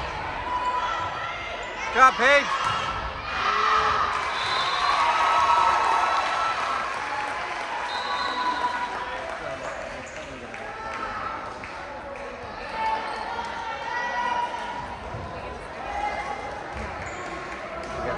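A crowd of spectators chatters and cheers in a large echoing gym.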